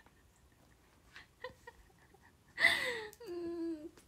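A young woman laughs tearfully.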